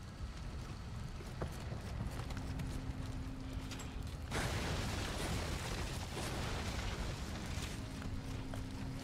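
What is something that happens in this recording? Footsteps crunch over dirt and debris.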